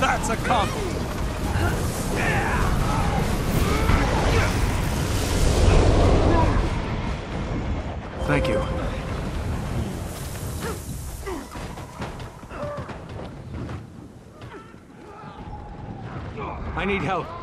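Swords clash and hit in a video game fight.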